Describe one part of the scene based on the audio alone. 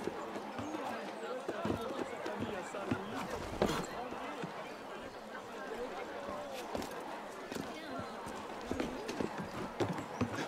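Hands grab and scrape on stone ledges during climbing.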